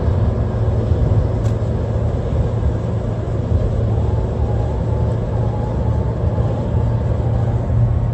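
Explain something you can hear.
A car engine hums steadily with road noise inside the cabin.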